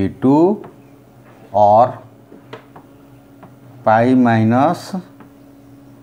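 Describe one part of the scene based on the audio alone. A man speaks in short, drawn-out phrases, close by, as if lecturing.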